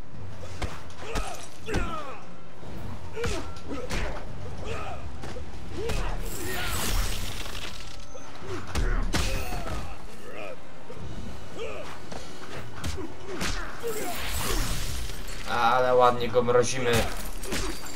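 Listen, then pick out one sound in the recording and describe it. Punches and kicks land with sharp thuds and whooshes.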